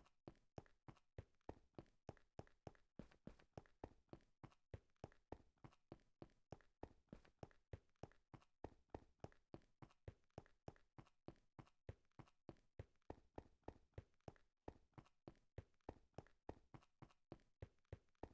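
Quick footsteps crunch steadily on rough stone.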